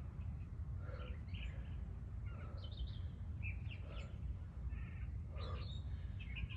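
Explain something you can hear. A woman speaks calmly close by.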